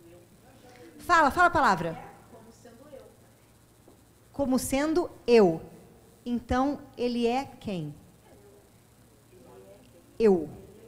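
A woman speaks with animation into a microphone, heard through a loudspeaker in an echoing room.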